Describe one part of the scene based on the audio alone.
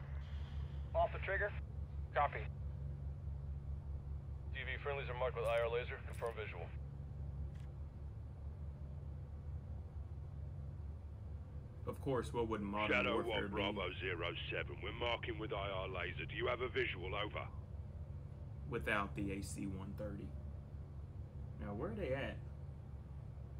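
A young man talks calmly into a headset microphone.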